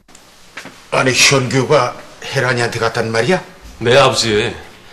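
An older man speaks with surprise close by.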